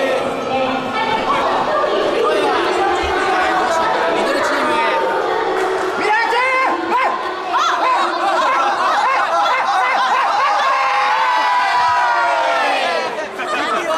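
A crowd of children and young people chatter and shout excitedly in a large echoing hall.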